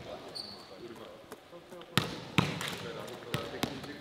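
A volleyball slaps against hands again and again.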